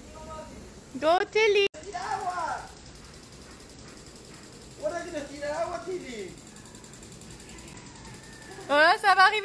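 A small child squeals and shouts excitedly outdoors.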